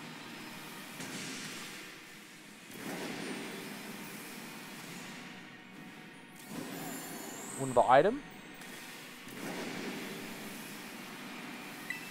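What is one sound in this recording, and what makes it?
A soft whooshing rush of speed swells and fades several times.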